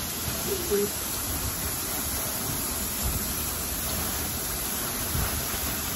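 A hose sprays water with a steady hiss against metal cages.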